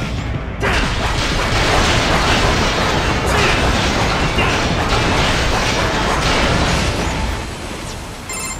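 A blade grinds loudly against metal, scraping.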